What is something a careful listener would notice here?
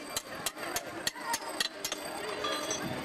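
Metal clinks sharply as a man works on a bicycle wheel.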